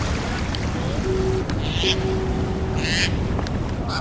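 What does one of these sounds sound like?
Footsteps crunch on wet sand.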